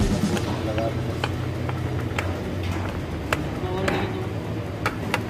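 Metal tools clink and tap against engine parts.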